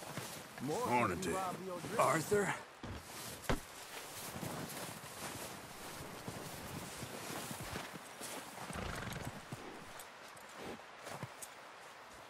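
Boots crunch through snow.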